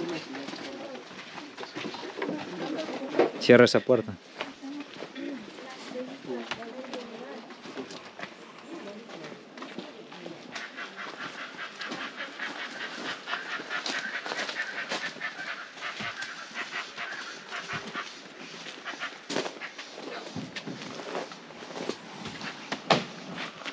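Footsteps crunch on a dirt path outdoors.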